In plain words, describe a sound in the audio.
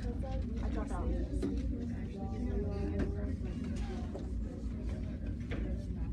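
An eraser wipes across a whiteboard.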